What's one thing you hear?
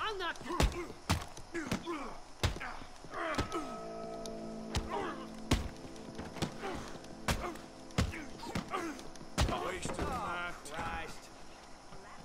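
A man grunts and shouts as he fights.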